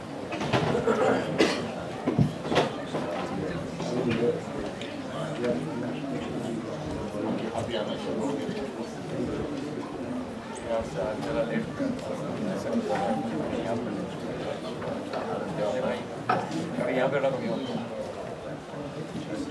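Elderly men talk calmly nearby in a room with some echo.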